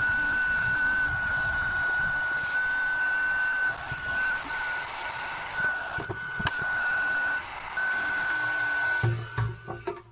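An electric pump hums with a steady high whine, then stops.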